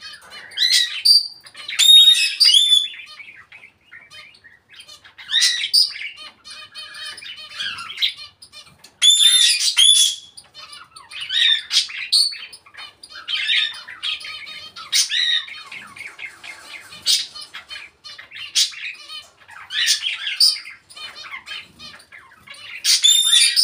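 A parrot whistles and chatters in loud bursts close by.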